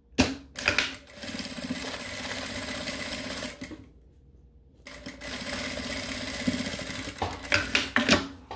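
A sewing machine runs in steady bursts, stitching fabric.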